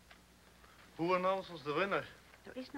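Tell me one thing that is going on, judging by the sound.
A man speaks out loudly to a seated crowd.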